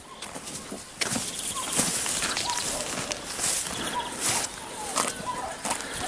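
Footsteps swish through short grass.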